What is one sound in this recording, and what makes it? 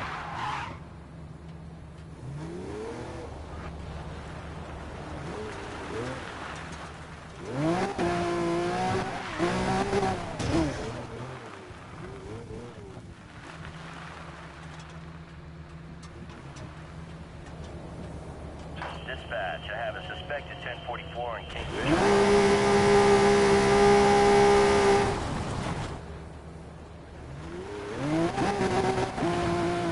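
A sports car engine revs and roars.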